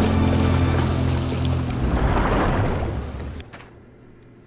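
A ship explodes with a deep, rumbling roar that slowly fades.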